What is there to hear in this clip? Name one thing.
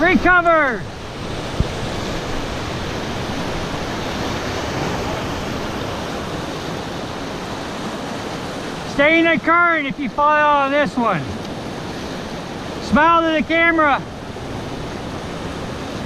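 Rapids rush and roar loudly around a raft.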